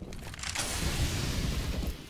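Gunshots crack from a rifle in the distance.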